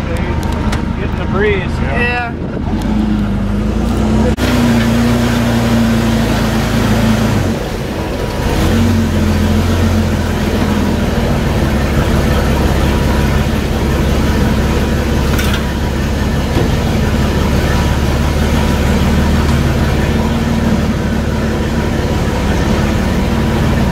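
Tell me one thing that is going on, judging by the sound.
A vehicle engine drones steadily and loudly up close.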